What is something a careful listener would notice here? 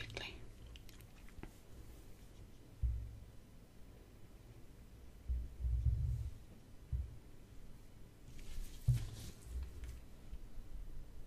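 Hands fumble and bump against a phone close to the microphone.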